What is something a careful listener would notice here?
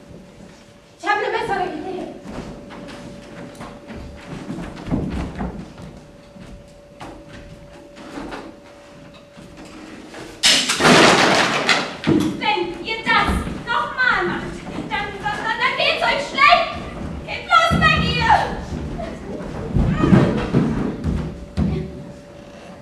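A young woman speaks loudly and with animation from a stage across a hall.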